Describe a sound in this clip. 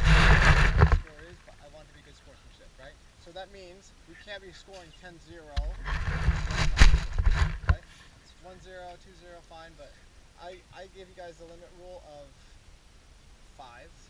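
A young man speaks with animation to a group nearby, outdoors.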